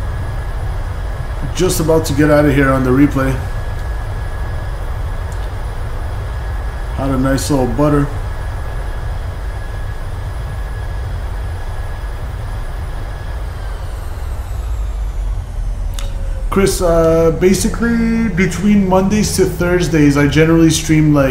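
A jet engine rumbles steadily.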